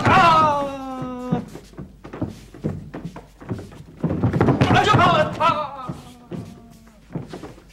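Bare feet thump and slide on a mat.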